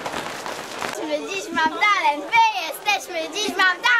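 Young girls shout and squeal excitedly.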